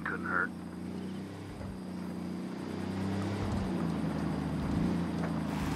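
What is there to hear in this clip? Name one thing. A truck engine hums steadily as it drives along a rough dirt road.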